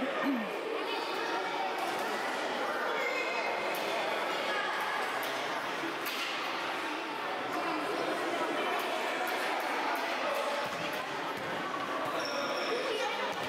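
Adult spectators talk and call out from the sideline.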